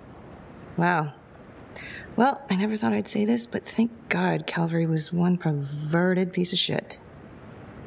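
A young woman speaks quietly and calmly, close by.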